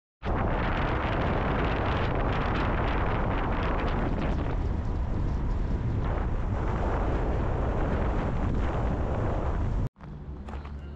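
Wind rushes loudly and steadily outdoors.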